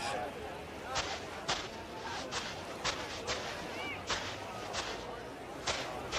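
A man's heavy footsteps crunch on sand.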